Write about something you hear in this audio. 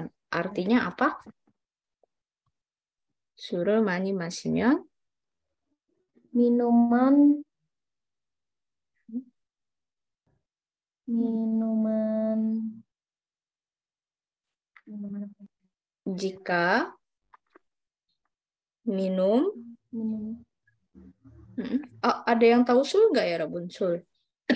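A woman speaks slowly and clearly over an online call, with pauses.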